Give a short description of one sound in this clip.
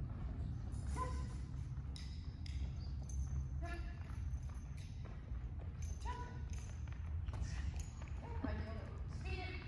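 A woman calls out short commands to a dog in a large echoing hall.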